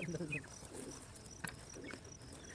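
Pruning shears snip through a stem.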